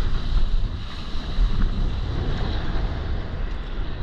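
Water splashes and sprays around a board moving fast.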